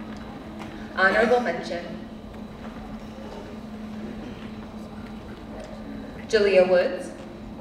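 A woman calls out loudly through a loudspeaker in a large echoing hall.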